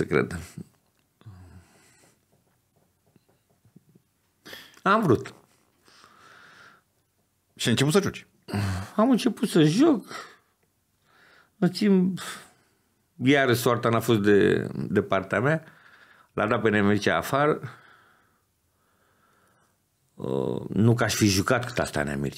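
A middle-aged man speaks with animation close to a microphone, pausing often.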